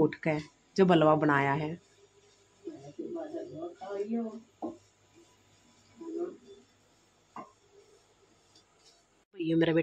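A wooden spatula scrapes and stirs food in a pan.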